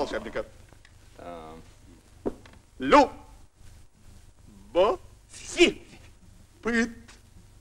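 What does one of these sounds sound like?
A man speaks with animation, in short loud bursts.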